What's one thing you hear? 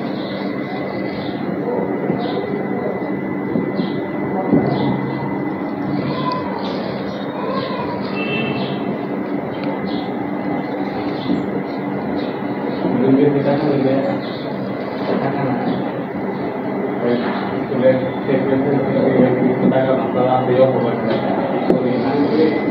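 A marker squeaks and taps on a whiteboard.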